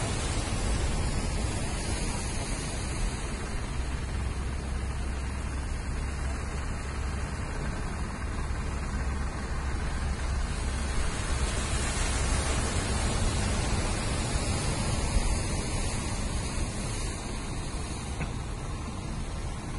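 Wind blows across the water.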